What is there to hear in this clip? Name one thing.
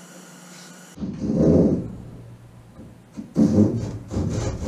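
A hand saw rasps back and forth through wood.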